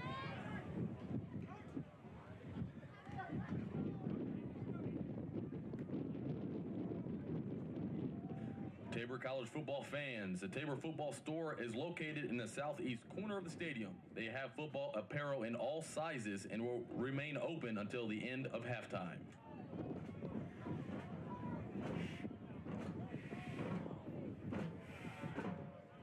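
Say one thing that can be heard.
A crowd of spectators murmurs and calls out outdoors.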